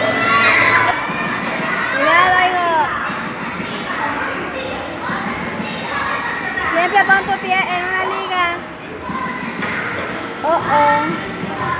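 Young children shout and squeal nearby in a large echoing room.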